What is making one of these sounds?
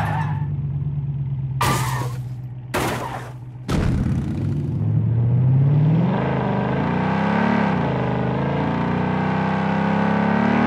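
A truck engine hums and revs.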